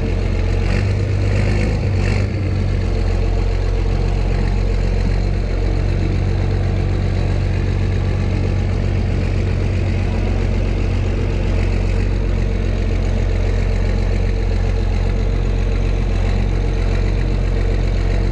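A tractor engine idles with a steady, low diesel rumble close by.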